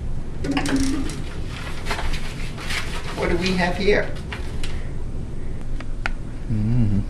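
A teenage boy speaks nearby.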